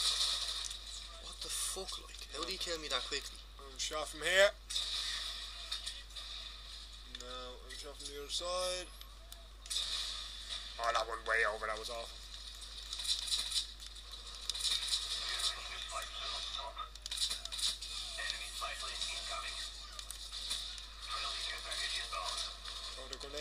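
Gunfire crackles in rapid bursts from a video game.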